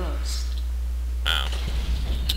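A rifle fires shots.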